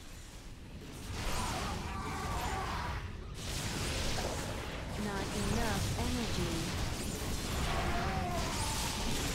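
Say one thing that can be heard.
Electric zaps and blasts crackle in a busy battle.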